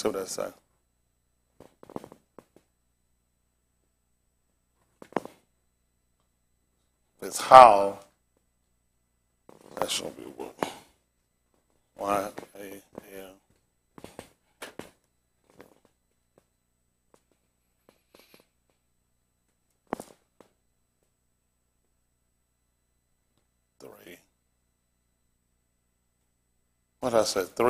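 A man speaks in short bursts with long pauses.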